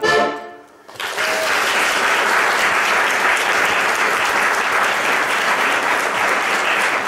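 An audience applauds steadily in a large room.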